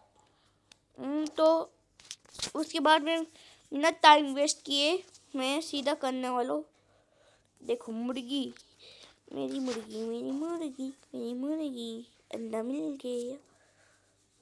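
A young child talks with animation close to a microphone.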